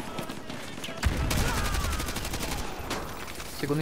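Rapid gunfire bursts close by.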